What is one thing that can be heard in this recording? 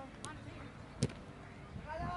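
A football is kicked with a sharp thump.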